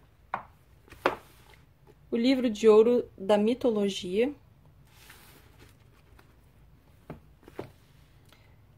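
A book scrapes as it slides out from between other books.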